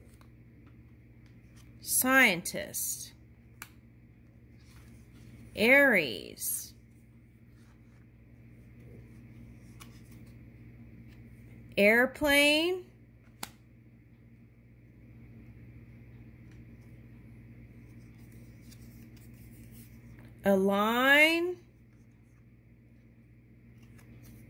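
Paper cards tap and slide softly on a table.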